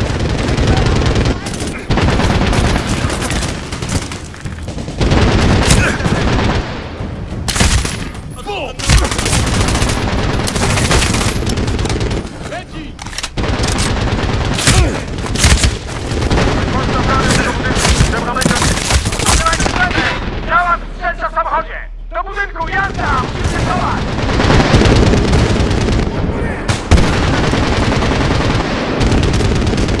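Rifles fire in rapid loud bursts, close by.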